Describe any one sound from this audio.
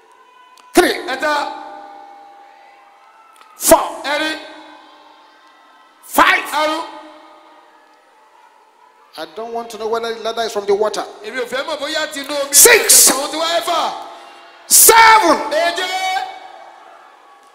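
A crowd of men and women shouts prayers in loud bursts that echo across a large open space.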